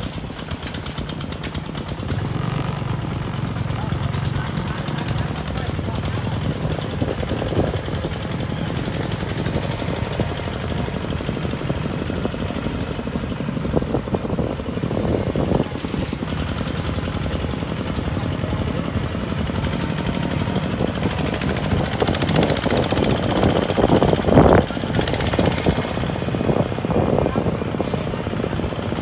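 A small engine chugs steadily nearby.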